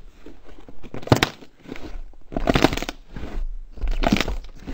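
Slime pops and crunches loudly as hands press into it.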